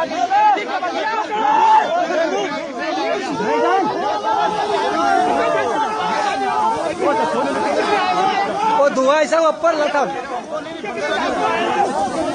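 A crowd of men shouts and talks over one another, close by, outdoors.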